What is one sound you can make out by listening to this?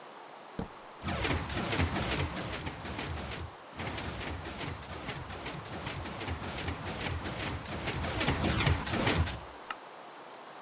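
Footsteps crunch quickly over grass and dirt.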